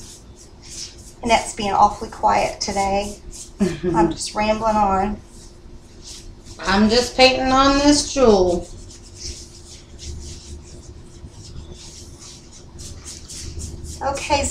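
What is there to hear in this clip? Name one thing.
A paintbrush swishes softly against the inside of a tub.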